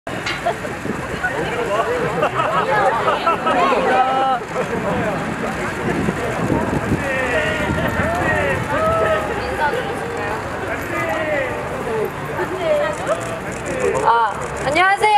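A crowd of young women chatters and cheers outdoors.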